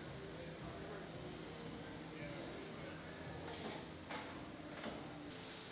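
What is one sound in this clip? A spot welding gun buzzes and clicks against metal.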